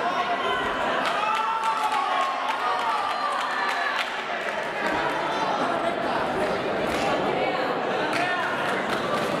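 A crowd shouts and cheers loudly.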